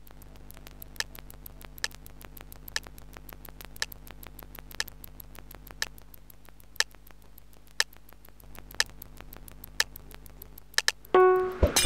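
A game countdown ticks once a second.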